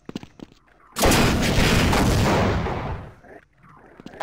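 A rocket explodes with a loud, rumbling boom.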